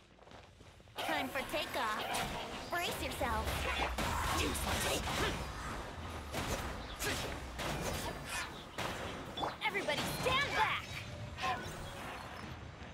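Magical blasts whoosh and crash in loud bursts.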